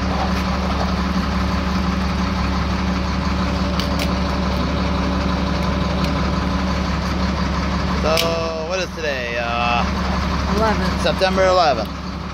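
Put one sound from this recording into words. A fuel pump hums steadily.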